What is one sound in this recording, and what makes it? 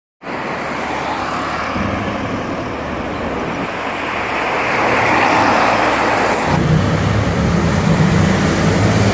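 Traffic noise from cars passing along a street fills the air.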